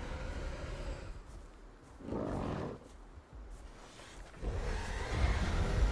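Water splashes as a large creature swims through it.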